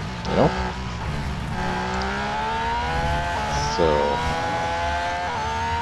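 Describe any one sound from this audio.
A racing car engine drones and slowly rises in pitch as the car speeds up.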